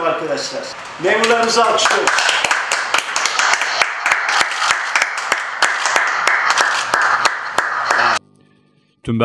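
Two men clap their hands together.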